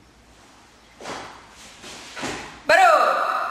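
Bare feet thud and slap on a mat.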